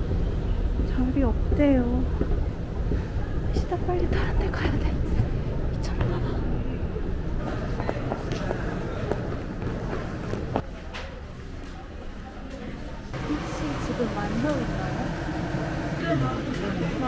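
A young woman talks close to the microphone.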